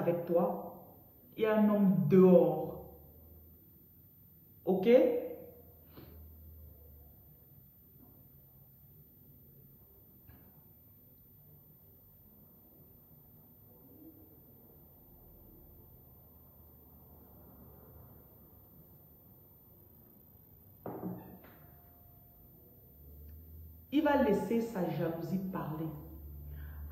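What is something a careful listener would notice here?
A woman speaks with animation close to a phone microphone.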